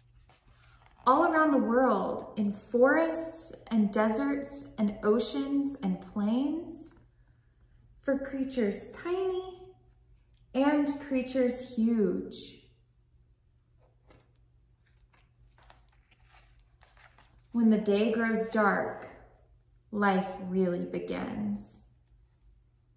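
A young woman reads aloud calmly and expressively, close by, with pauses.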